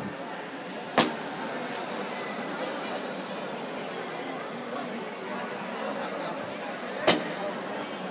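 Sharp slaps ring out as kicks land.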